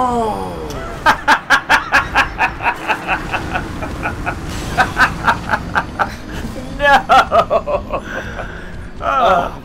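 A young man laughs loudly in bursts.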